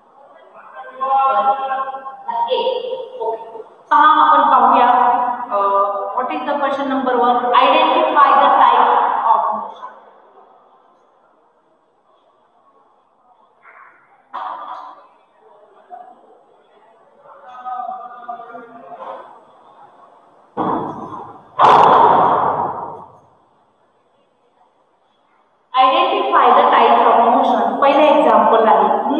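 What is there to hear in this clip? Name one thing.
A woman speaks clearly and steadily, as if teaching, close by.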